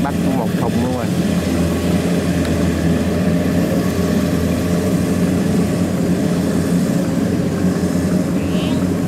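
A harvester engine drones steadily nearby.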